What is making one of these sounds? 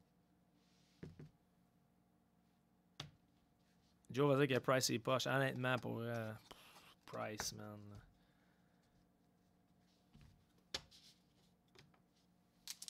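Trading cards click and rustle as hands shuffle them.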